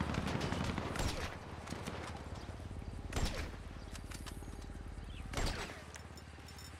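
A rifle fires single loud shots that echo away.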